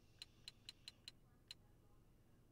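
Short game menu clicks tick in quick succession.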